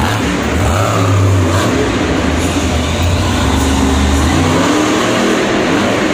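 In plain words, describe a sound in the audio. A monster truck engine roars loudly, revving up and down.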